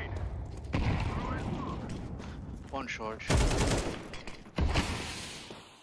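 Rifle shots fire in loud bursts.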